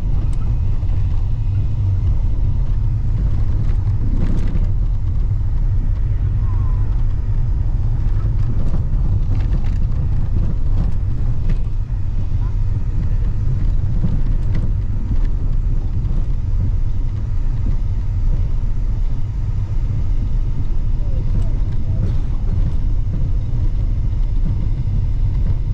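A vehicle's engine rumbles steadily from inside as it drives.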